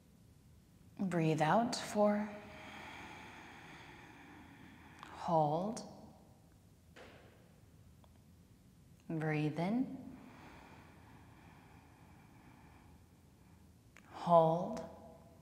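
A woman speaks softly and calmly in an echoing room.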